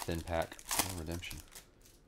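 A foil wrapper crinkles in hands.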